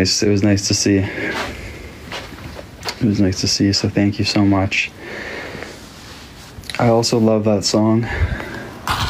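A young man talks casually and close up into a phone microphone.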